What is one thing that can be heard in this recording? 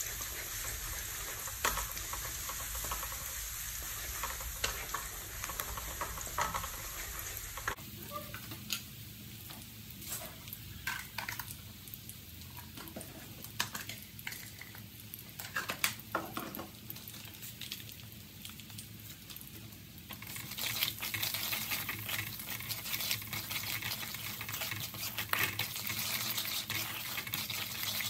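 A wooden spatula scrapes and taps against a metal wok.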